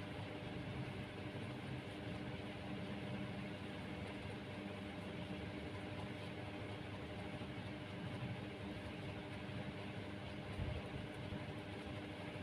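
Rough twine rustles softly between fingers.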